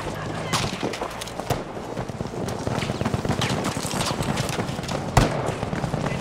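Gunshots crack sharply.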